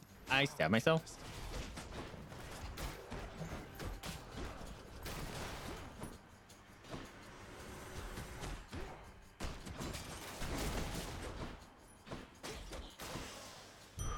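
Blows and magic blasts clash in a noisy fight.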